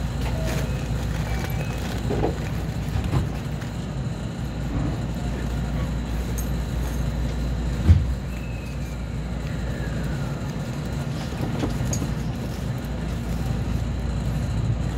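A train rumbles low and steady along the tracks.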